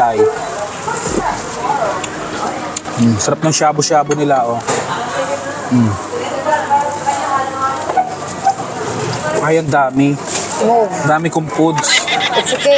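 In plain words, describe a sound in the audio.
Several women talk and chat close by.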